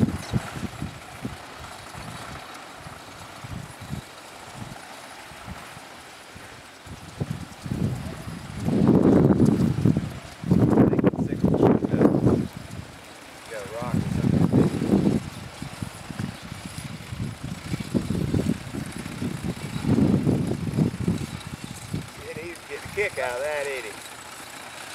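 A horse-drawn mower clatters as it cuts through dry grass.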